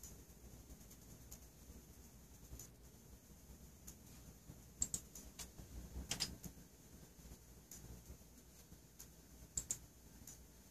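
Candle flames crackle and sputter softly.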